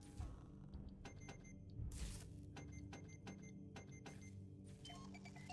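Short electronic menu beeps and clicks sound in quick succession.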